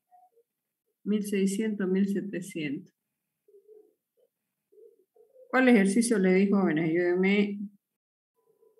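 A middle-aged woman speaks calmly over an online call, in short bursts.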